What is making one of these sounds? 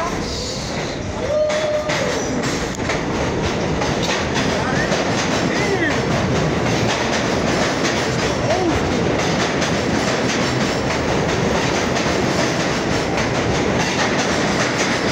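A subway train rushes past close by with a loud steady roar.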